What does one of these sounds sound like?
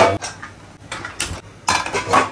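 A gas stove knob clicks as it turns.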